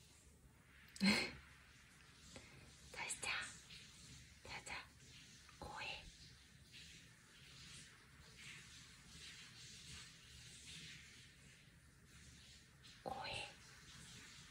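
A small dog whimpers softly in its sleep.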